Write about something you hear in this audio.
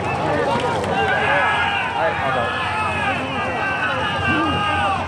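A large crowd of spectators cheers and chants loudly, echoing across an open stadium.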